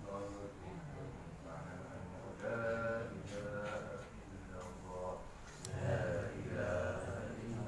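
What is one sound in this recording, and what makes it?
A man recites in a slow, melodic chanting voice in an echoing room.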